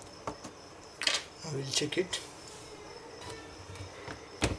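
A laptop is handled and set down on a table with a knock.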